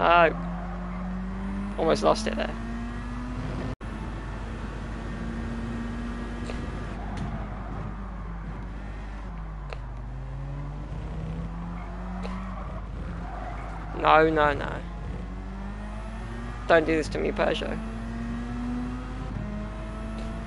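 A racing car engine drones steadily, rising and falling in pitch as it speeds up and slows down.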